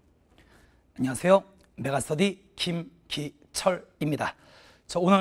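A young man speaks with animation into a clip-on microphone.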